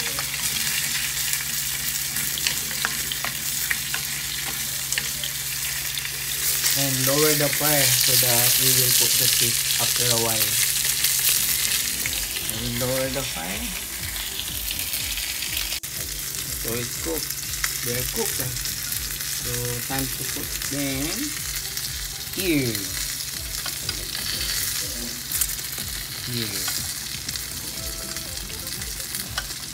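Food bubbles and sizzles steadily in a pan.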